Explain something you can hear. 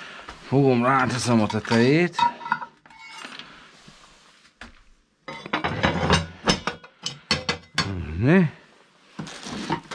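A metal poker scrapes and rattles inside a stove.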